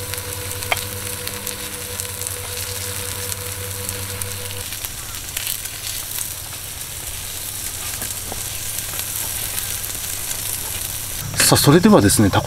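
Batter sizzles softly on a hot griddle.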